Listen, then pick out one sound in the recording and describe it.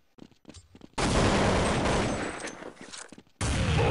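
An explosion booms and roars loudly.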